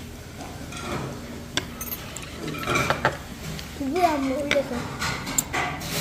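Chopsticks clink against a ceramic dish.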